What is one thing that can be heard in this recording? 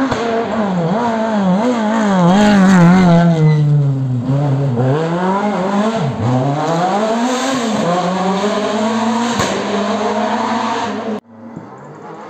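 A rally car races close by, its engine revving hard and dropping between gear changes.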